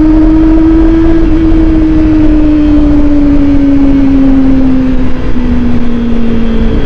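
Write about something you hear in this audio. A motorcycle engine hums steadily, its pitch slowly falling as it slows.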